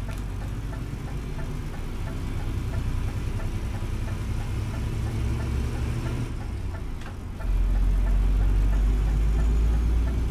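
A turn signal ticks rapidly.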